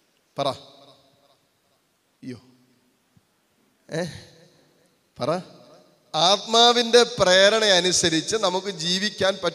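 A man speaks with animation into a microphone, heard through a loudspeaker with short pauses between phrases.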